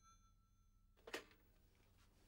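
A telephone handset is lifted with a sharp clack.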